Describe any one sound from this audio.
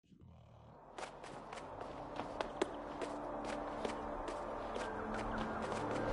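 Small quick footsteps patter on stone.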